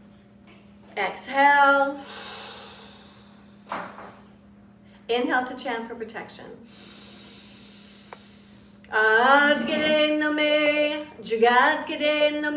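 A middle-aged woman sings and chants slowly close to a microphone.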